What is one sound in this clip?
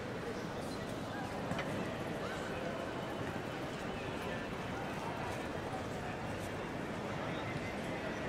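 A crowd murmurs through a large echoing hall.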